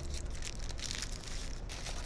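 Paper crinkles as hands fold a wrapper.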